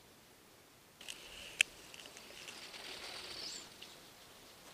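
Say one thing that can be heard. Plastic wheels crunch and scrape over packed snow.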